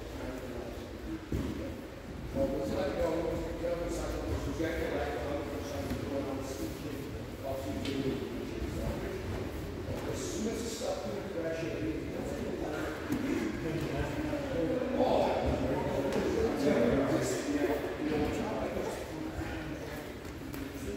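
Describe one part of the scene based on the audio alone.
Several people talk in the distance in a large echoing hall.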